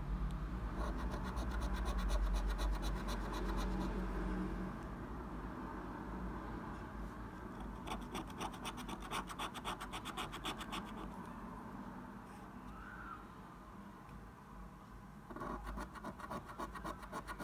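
A coin scratches rapidly back and forth across a scratch card in short bursts.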